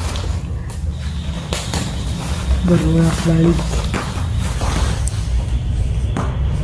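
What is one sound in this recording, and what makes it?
A cat rustles and crinkles through a fabric play tunnel.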